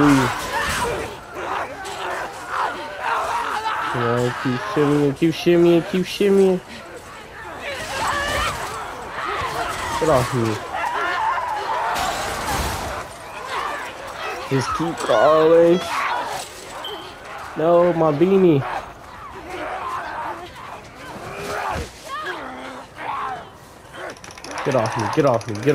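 A monster snarls and growls.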